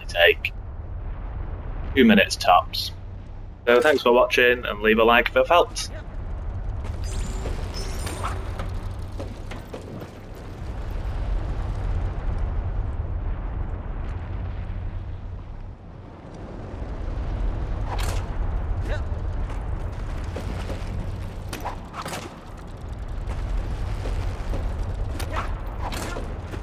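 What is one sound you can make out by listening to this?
Lava rumbles low and steady.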